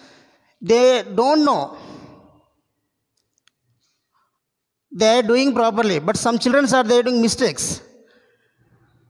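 A man speaks forcefully and with animation into a close headset microphone.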